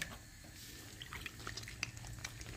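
A hand squishes and kneads wet dough in flour.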